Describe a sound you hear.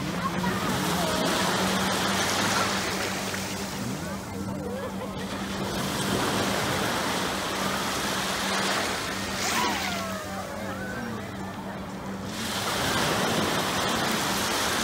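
Small waves wash and hiss over the sand close by.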